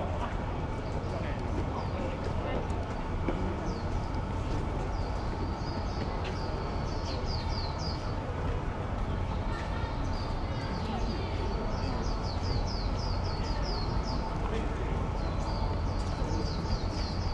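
A crowd of people murmurs in the distance outdoors.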